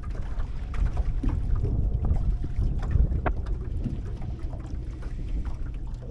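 Wind gusts over open water, rumbling against the microphone.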